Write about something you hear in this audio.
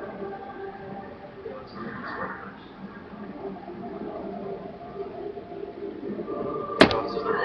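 Tinny electronic music plays steadily through a small television speaker.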